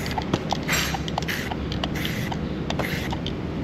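A marking crayon rubs in quick strokes across a cow's hide.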